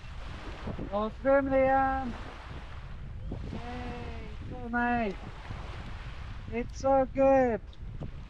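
A young child shouts out loudly in long calls nearby.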